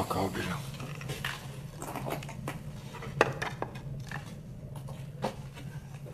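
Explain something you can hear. Wooden objects knock and rattle as they are handled.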